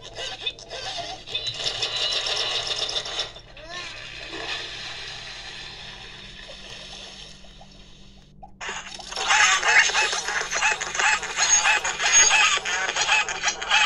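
Cartoonish game sounds play from a tablet.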